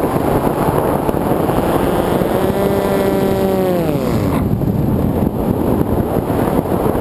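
Wind rushes and buffets loudly against a flying aircraft.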